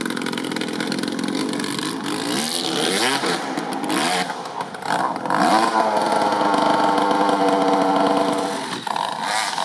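A dirt bike engine revs hard and sputters as it climbs.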